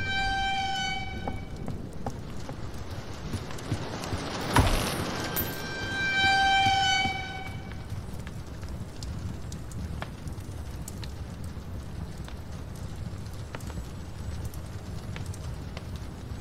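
A fire crackles softly in a fireplace.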